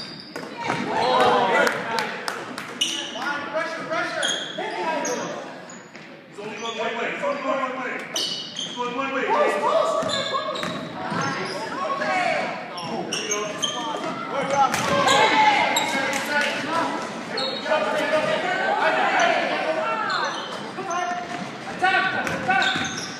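Young boys shout and call to each other across the court.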